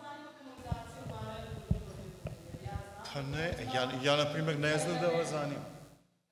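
A man speaks calmly into a microphone in a room with slight echo.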